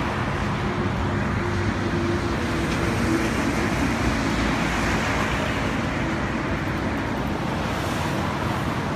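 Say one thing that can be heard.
Wind blusters loudly outdoors.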